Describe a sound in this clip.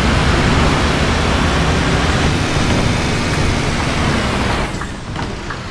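Heavy rain drums on a bus windscreen.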